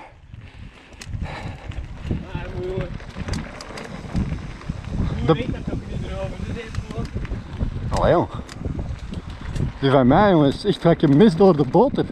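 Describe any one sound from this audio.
Bicycle tyres roll and crunch over a gravel track.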